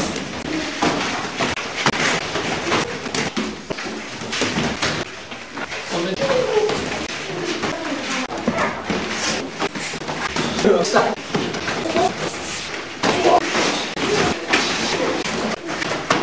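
Boxing gloves thud against each other and against pads in quick, uneven blows.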